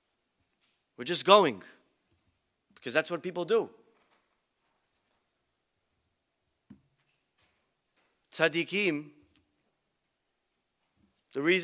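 A young man speaks into a microphone in short phrases with long pauses.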